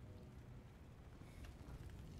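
A fire crackles and hisses nearby.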